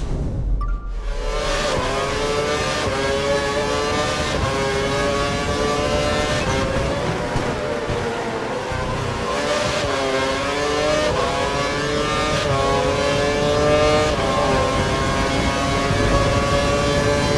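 A racing car engine screams at high revs, rising and dropping sharply as it shifts gears.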